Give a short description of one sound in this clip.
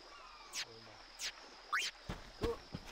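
Short electronic blips sound in quick succession.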